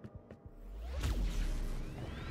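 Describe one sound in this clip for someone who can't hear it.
A heavy energy blast fires with a deep boom.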